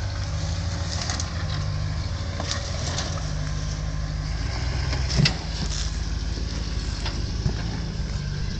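Rocks crunch and knock under an off-road truck's tyres.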